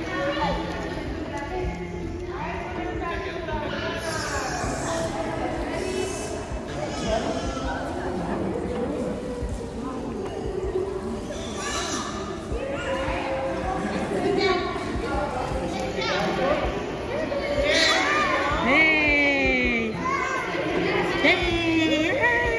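Many children and adults chatter and call out in a large echoing pool hall.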